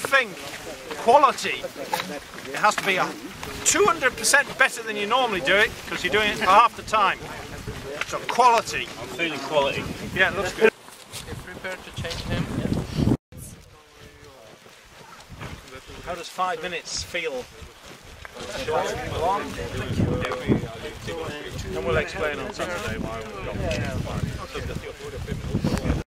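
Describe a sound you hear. Several men talk with each other nearby, outdoors.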